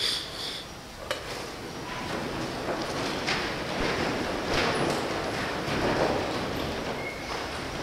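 Robes rustle as people move about and sit down.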